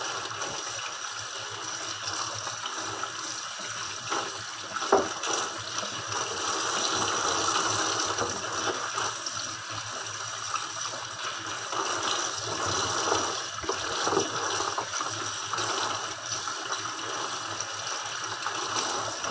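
Plastic gloves rustle and squeak as hands rub under running water.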